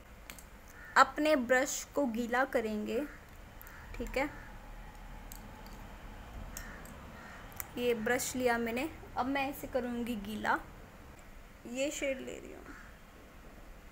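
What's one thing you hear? A young woman talks calmly close to the microphone.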